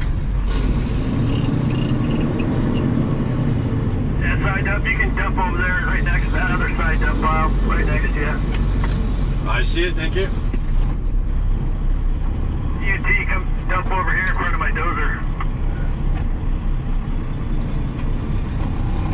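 An engine roars steadily up close.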